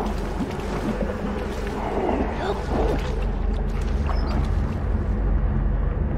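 Footsteps splash slowly through shallow water.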